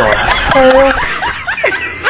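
A young man laughs loudly and wildly.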